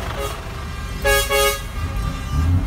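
A truck's air horn blasts briefly.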